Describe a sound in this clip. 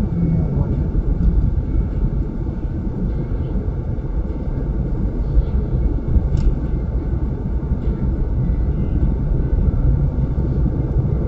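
Tyres roll on smooth asphalt.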